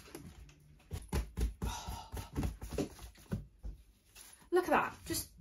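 A young woman pats flour off her clothes with her hands.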